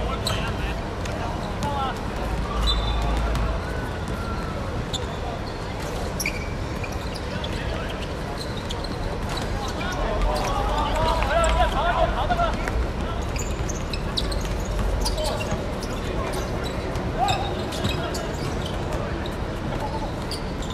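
A basketball bounces on a hard outdoor court.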